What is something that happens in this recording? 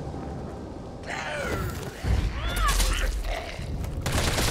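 A zombie lunges and bites with a wet growl.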